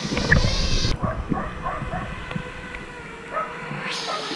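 A drone splashes into water.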